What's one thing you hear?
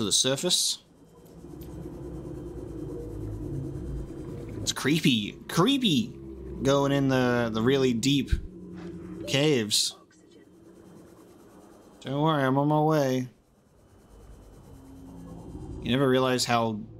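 A man speaks into a close microphone with animated, drawn-out words.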